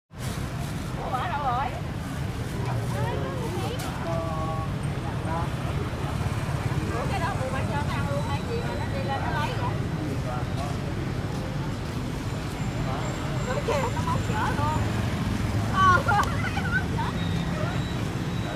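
A monkey rustles a plastic bag.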